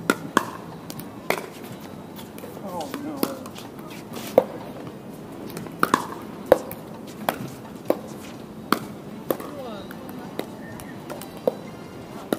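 Paddles strike a plastic ball with sharp, hollow pops.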